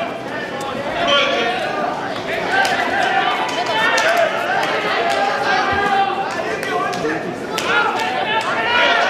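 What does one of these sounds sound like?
A crowd of spectators cheers and shouts loudly in a large hall.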